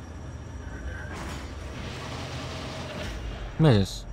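A heavy metal door slides open with a mechanical hiss.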